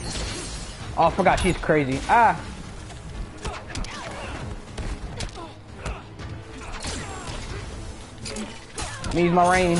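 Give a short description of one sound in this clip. Fighters grunt and shout with each attack.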